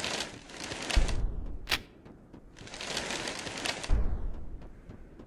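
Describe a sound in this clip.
A deep thud booms twice.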